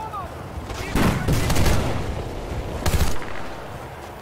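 A rifle fires several loud shots in quick bursts.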